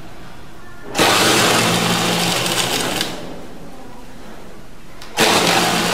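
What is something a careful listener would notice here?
A sewing machine stitches fabric in short bursts.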